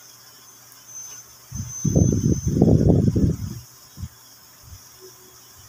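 A knife taps and scrapes on a cutting board.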